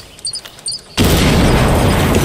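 A loud explosion roars close by.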